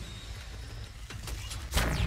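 Electric energy from a video game weapon crackles and zaps.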